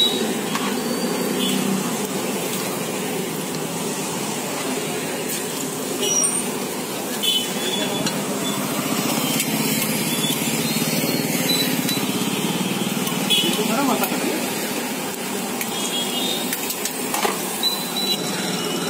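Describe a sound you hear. Hot oil sizzles and bubbles steadily.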